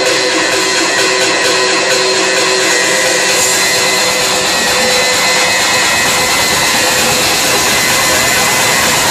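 Loud dance music plays over a club sound system in a crowded room.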